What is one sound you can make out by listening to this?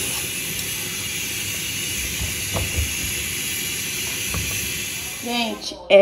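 A fork stirs and scrapes pasta in a metal pot.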